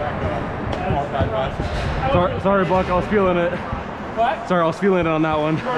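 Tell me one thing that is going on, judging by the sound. Men talk loudly nearby.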